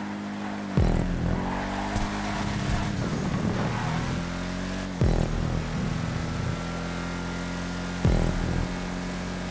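Tyres screech on tarmac through the corners.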